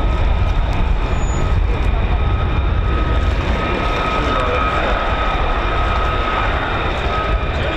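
Wind buffets the microphone outdoors with a steady low rumble.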